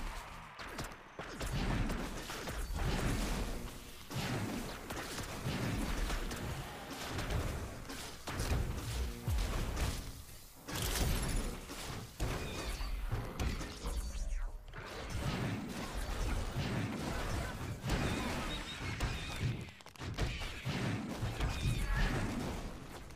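Game effects zap and boom in a battle.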